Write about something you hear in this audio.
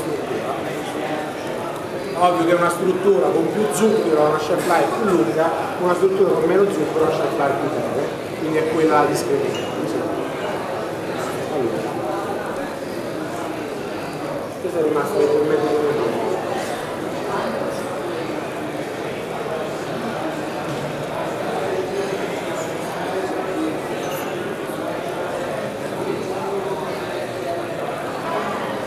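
A man speaks with animation into a microphone, heard through loudspeakers in a large room.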